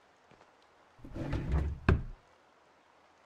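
A wooden drawer slides shut with a thud.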